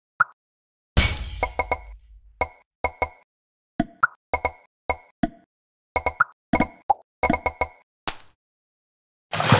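Bright cartoon pops and chimes ring out in quick bursts as balls merge.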